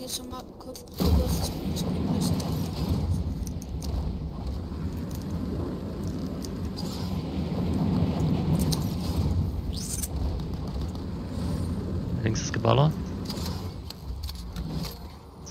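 Wind rushes steadily past during a long glide through the air.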